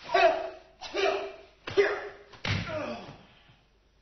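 A body thuds onto the floor.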